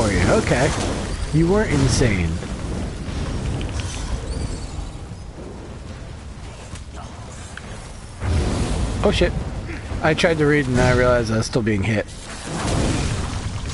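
Magical fire blasts roar and crackle.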